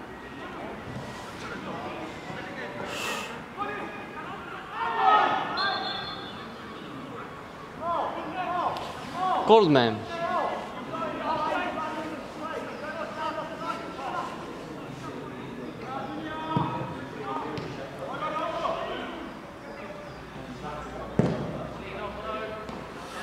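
Male players shout to each other across an open pitch outdoors.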